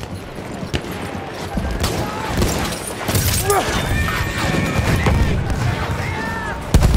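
Horse hooves thud on the ground.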